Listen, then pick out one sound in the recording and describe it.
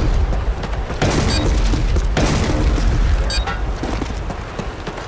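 A rifle fires rapid shots in a video game.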